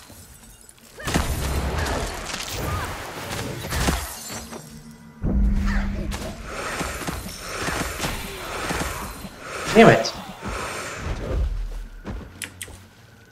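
Blows and bursts of a monster's attacks thud and crash.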